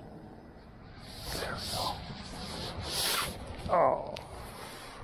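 A glove brushes and rubs against the microphone.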